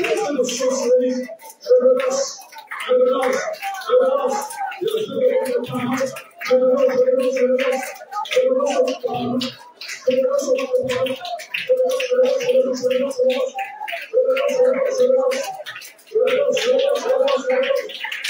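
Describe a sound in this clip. A man preaches loudly and fervently through a microphone and loudspeakers in an echoing hall.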